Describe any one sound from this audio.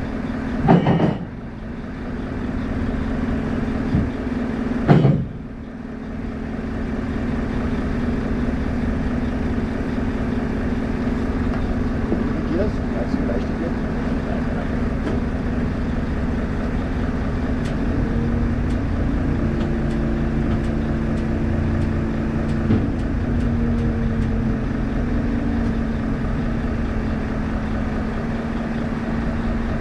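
A heavy engine idles with a steady low hum.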